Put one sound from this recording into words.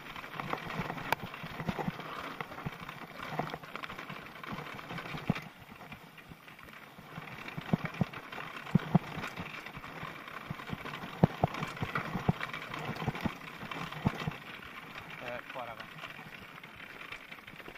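A bicycle rattles and clunks over bumps.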